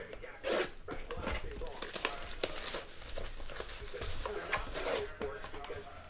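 Cardboard and plastic wrapping rustle and crinkle as a box is opened.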